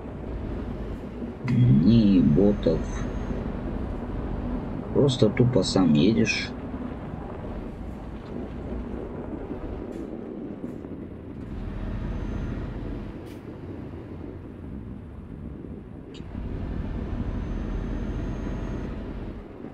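A truck engine rumbles low and steadily.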